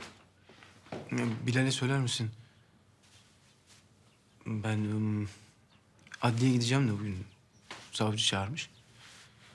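A young man speaks with agitation, close by.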